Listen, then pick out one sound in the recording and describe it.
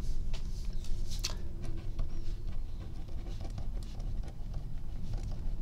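A pen scratches and scrapes across paper.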